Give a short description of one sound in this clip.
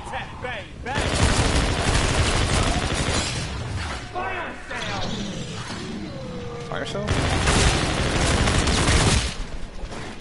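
Gunfire rattles in loud rapid bursts.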